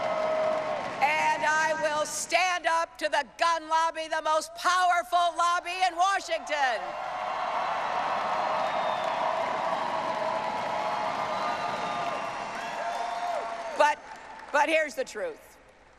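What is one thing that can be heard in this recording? A woman speaks forcefully through a microphone.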